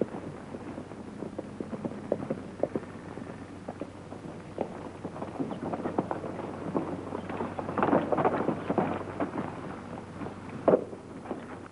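Horse hooves clop on a dirt track.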